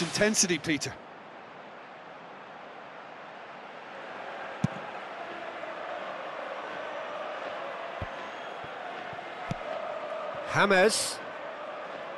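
A stadium crowd murmurs and roars.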